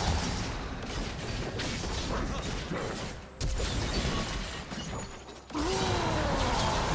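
Weapons clash and strike in quick hits.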